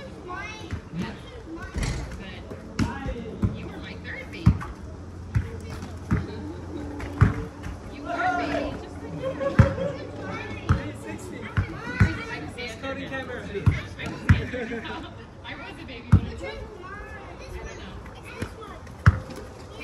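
Young men call out to each other during a game outdoors.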